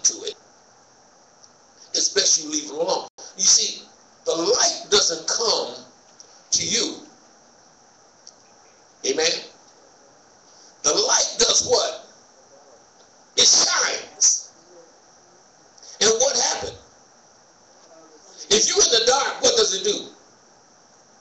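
A man preaches with emphasis into a microphone, in short bursts with pauses, in a room with a slight echo.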